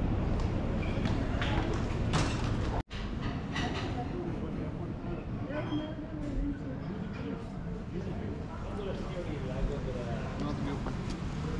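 Footsteps tap on stone pavement and steps.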